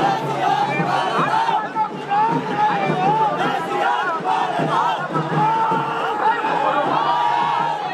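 A large crowd of men and women shouts and cheers loudly outdoors.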